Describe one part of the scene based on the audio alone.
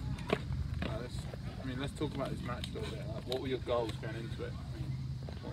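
Young men talk casually nearby outdoors.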